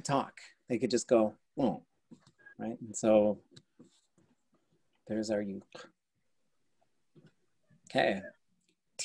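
An adult man speaks calmly over an online call, in short phrases with pauses.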